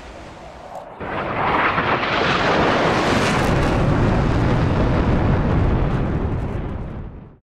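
A jet roars loudly as it flies past and slowly fades.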